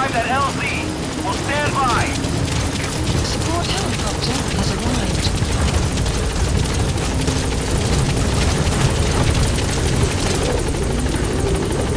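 A helicopter's rotor thuds loudly as it flies close overhead.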